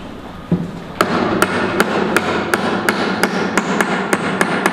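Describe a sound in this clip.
A hammer taps rapidly on wood.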